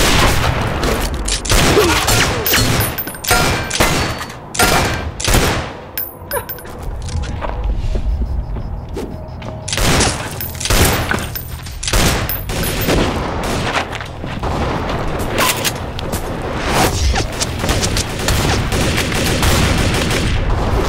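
Guns fire sharp shots in quick bursts outdoors.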